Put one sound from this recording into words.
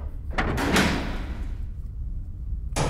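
A heavy metal door creaks slowly open.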